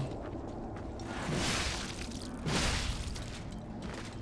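A blade whooshes through the air in swings.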